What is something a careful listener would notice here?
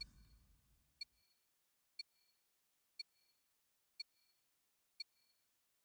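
A short electronic beep sounds once a second, counting down.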